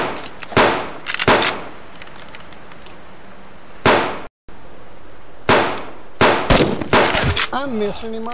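Sharp rifle shots ring out one after another.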